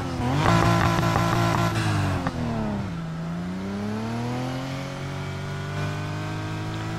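A sports car engine revs loudly, its pitch dropping and then climbing again as it accelerates.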